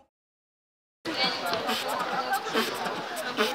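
A young man speaks nearby with animation.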